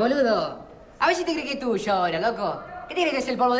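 A second young man speaks loudly and excitedly, close by.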